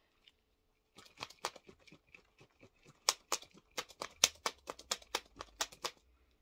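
A plastic ball crackles and crinkles as hands squeeze it.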